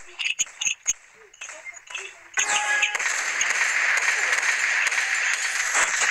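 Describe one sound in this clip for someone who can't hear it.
Rifle shots fire in quick succession.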